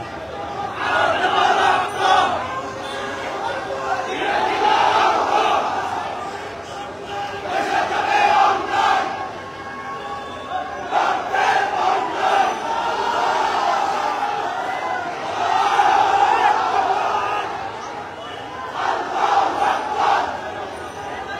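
A large crowd of men chants and cheers loudly in waves, close by.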